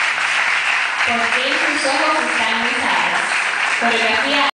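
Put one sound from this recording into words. A woman sings through loudspeakers.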